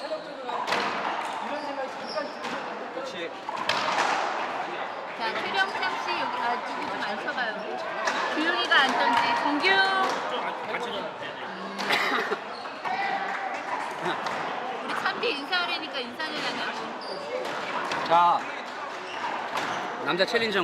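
A squash ball smacks off a racquet and the walls.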